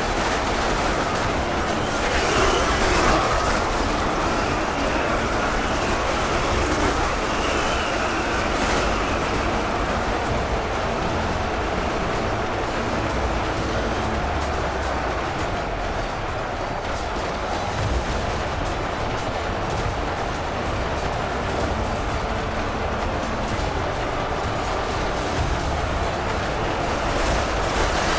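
Weapons clash in a dense, steady roar.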